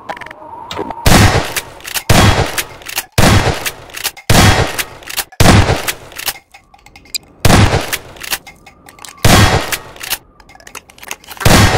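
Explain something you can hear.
A shotgun fires loud blasts again and again, each followed by a short echo.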